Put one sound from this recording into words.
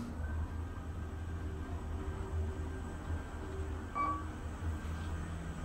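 An elevator hums steadily as it travels.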